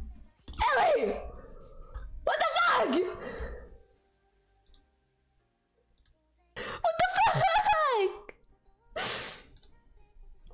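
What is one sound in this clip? A young woman speaks animatedly, close to a microphone, in short bursts with pauses.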